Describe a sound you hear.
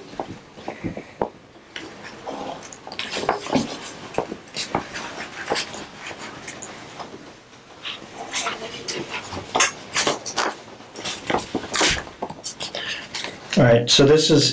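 A man speaks calmly and quietly, picked up by a distant microphone.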